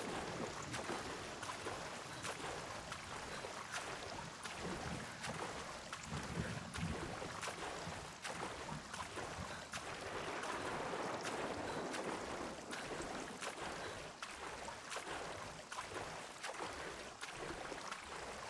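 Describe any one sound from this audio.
Rain patters steadily on water.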